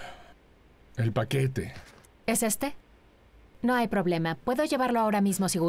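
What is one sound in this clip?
A young woman answers calmly close by.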